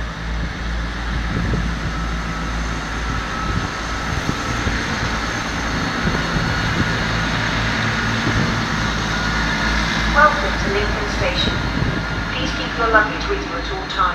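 A diesel train engine rumbles steadily nearby.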